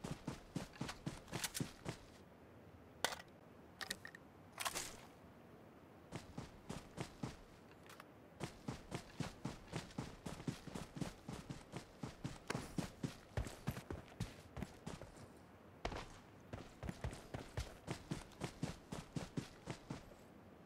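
Footsteps run quickly over grass in a steady rhythm.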